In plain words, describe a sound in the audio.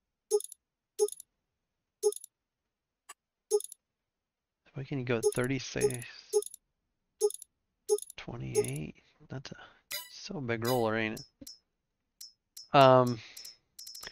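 Short electronic menu blips sound now and then.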